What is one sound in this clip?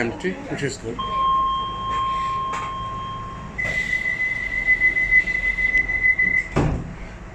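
A door warning tone beeps steadily.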